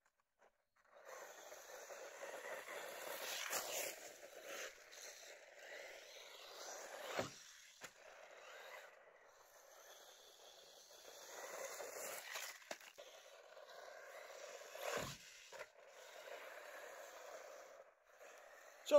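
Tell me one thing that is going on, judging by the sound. A small electric motor whines as a toy car races over dirt.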